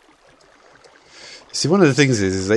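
Water splashes as something plunges in.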